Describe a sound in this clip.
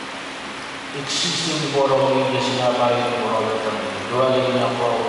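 A man chants in a steady sung voice through a microphone, in a reverberant hall.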